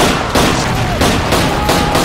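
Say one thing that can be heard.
A pistol fires a sharp shot.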